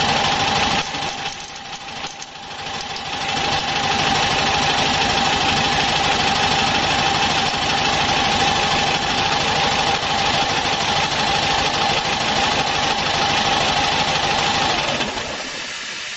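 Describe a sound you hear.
Fluid rushes and hisses steadily through a pipe fitting.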